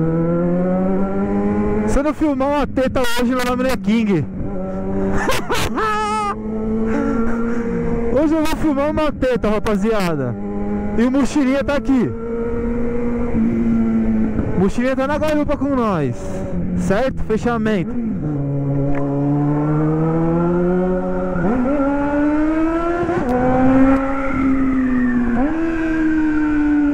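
A motorcycle engine hums steadily and revs up and down in bursts at close range.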